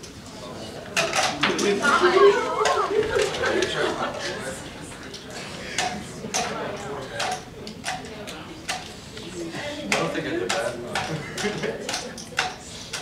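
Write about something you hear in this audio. A crowd of young people laughs and cheers in a room.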